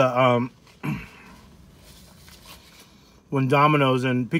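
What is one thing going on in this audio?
A man bites and chews crispy food close to a microphone.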